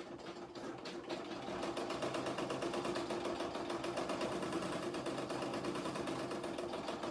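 An embroidery machine stitches with a rapid, steady whirring hum.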